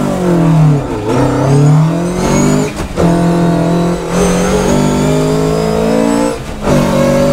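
A rally car engine revs hard, rising and dropping in pitch as gears change.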